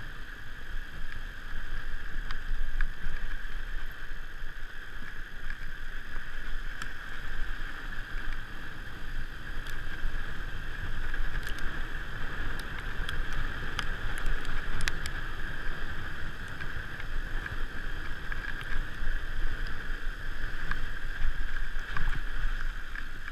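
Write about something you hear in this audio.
Fat bike tyres crunch steadily over packed snow.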